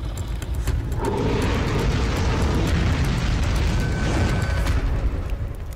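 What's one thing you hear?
Fire blasts with a deep roar.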